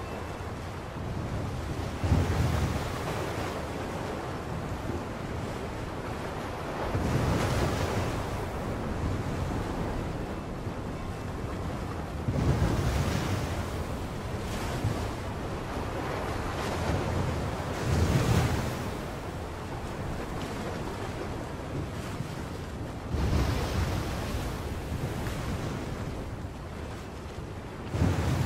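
A strong wind roars steadily.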